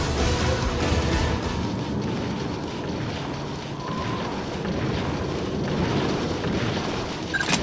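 Quick footsteps patter over hard ground.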